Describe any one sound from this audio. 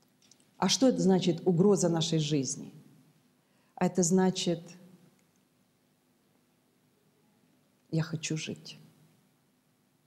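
A middle-aged woman speaks calmly and clearly into a microphone, with pauses between phrases.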